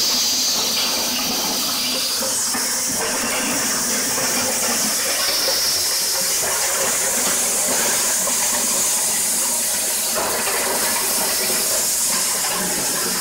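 A corn sheller machine runs with a loud, steady whirring roar.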